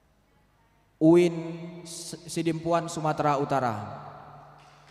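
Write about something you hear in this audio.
A young man speaks with animation into a microphone, heard through loudspeakers.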